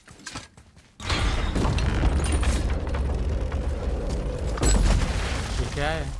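A heavy wooden gate grinds and rumbles as it rises.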